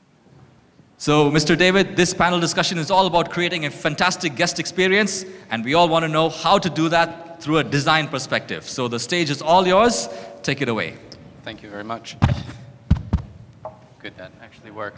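A man speaks calmly through a microphone over loudspeakers in a large hall.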